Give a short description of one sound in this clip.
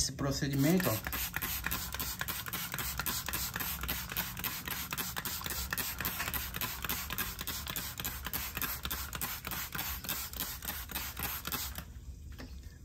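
A spray bottle squirts water in quick, repeated bursts.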